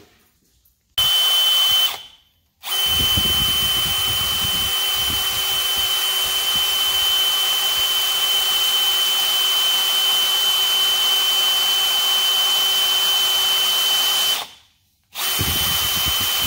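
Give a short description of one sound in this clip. An electric drill whirs steadily as it bores into metal, pausing briefly.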